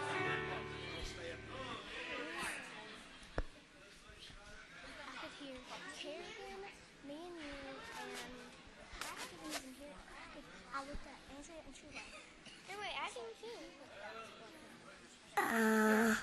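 Young girls sing together through a microphone in a large echoing hall.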